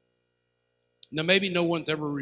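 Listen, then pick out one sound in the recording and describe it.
A man speaks clearly through a microphone in a large room.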